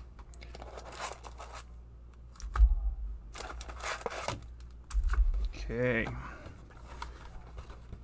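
Foil card packs crinkle as a hand sets them down.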